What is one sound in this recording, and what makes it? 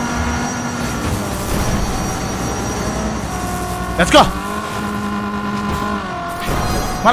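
A racing car engine hums steadily.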